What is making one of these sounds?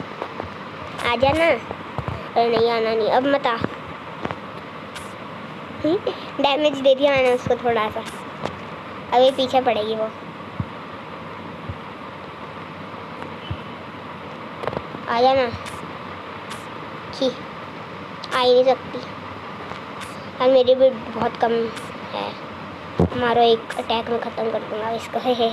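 A boy talks with animation, close to a microphone.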